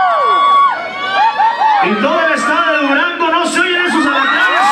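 A man sings loudly into a microphone over loudspeakers.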